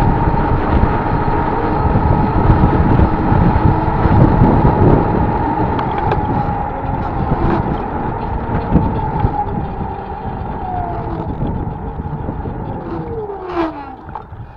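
Tyres rumble on asphalt.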